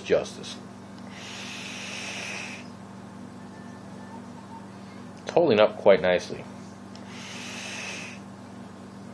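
A man draws a long, hissing breath through a vaping device.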